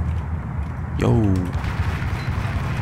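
A man shouts from nearby.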